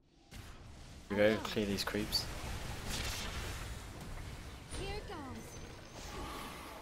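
Game spells blast and clash in a battle.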